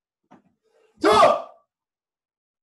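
A man gives a short sharp shout.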